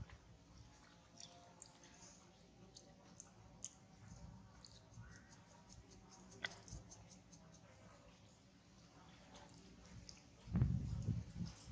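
A baby monkey chews and nibbles on a juicy piece of fruit.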